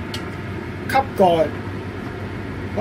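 A metal lid clanks onto a pan.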